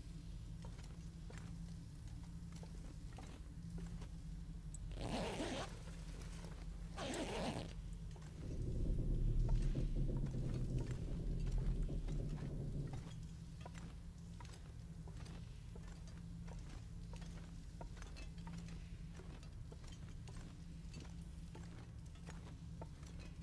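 Footsteps crunch slowly on a stone floor.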